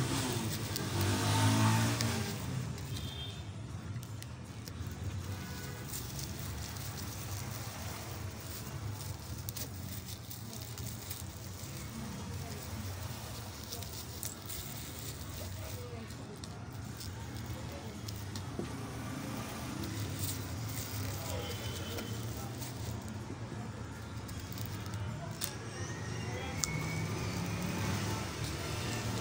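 Stiff woven fabric rustles and crinkles under hands.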